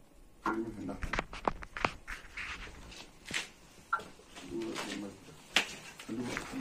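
Sharp knocks and rustles as a phone is handled close by.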